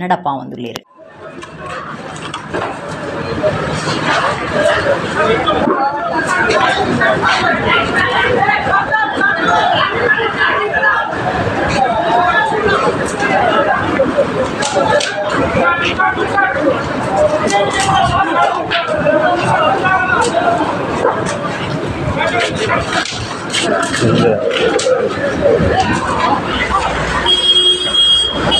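A crowd of men shout and talk excitedly nearby.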